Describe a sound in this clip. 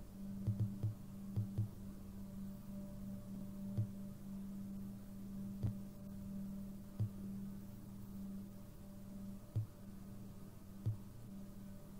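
Menu selections click softly, again and again.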